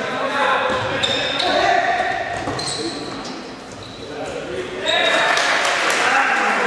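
Players and spectators shout and call out, echoing in a large hall.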